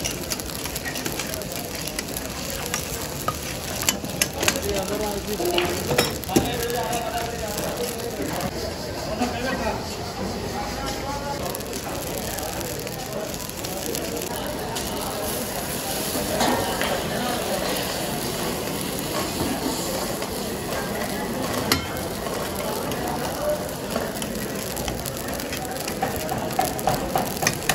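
Fires roar steadily under cooking pots.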